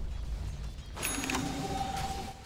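Magic spells crackle and blows clash in a battle.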